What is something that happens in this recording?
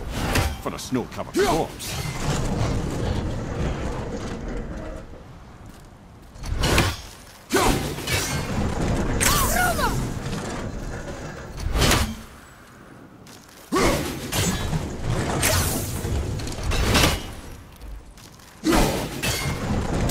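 An axe whooshes through the air as it is thrown.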